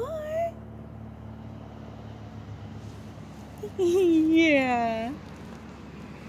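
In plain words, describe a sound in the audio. A puppy whines in short, high cries close by.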